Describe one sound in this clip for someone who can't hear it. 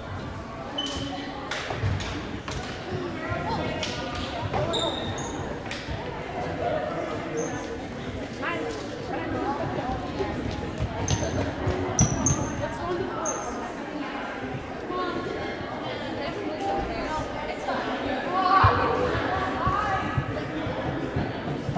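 A ball thumps and bounces on the floor.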